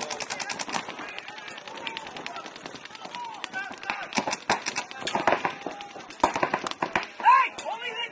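A paintball gun fires in rapid bursts of sharp pops.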